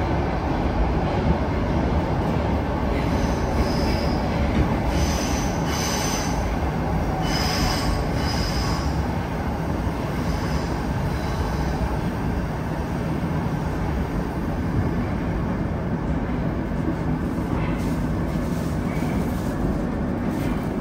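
A subway train rumbles and roars loudly along the tracks.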